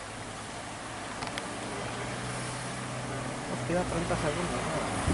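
A car drives up a road with a low engine hum.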